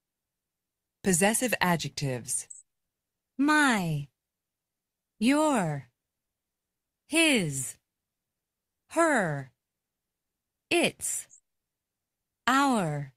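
A woman speaks clearly through an online call, in short phrases with pauses.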